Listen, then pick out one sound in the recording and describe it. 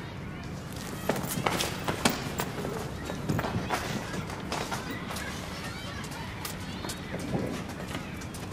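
Footsteps tap on pavement as people walk past.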